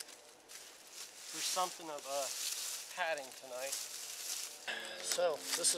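Dry leaves rustle as a man shifts on the ground.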